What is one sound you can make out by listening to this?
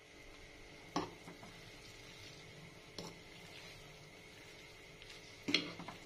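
Noodles squelch softly as a fork stirs them.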